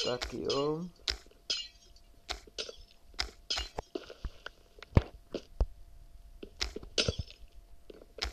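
Blocks crack and break with sharp taps of a pickaxe.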